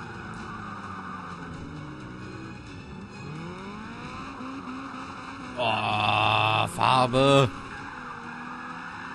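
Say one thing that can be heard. A car engine roars and revs up and down as gears shift.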